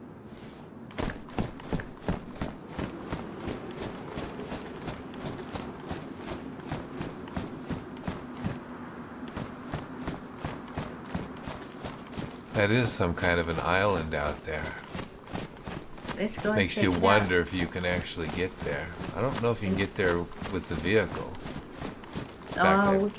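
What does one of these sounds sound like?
Footsteps crunch steadily on ground and gravel.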